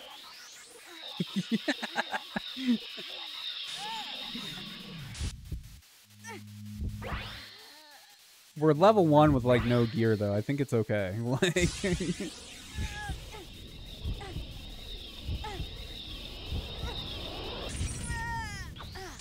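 Magical whooshing game sound effects burst and shimmer.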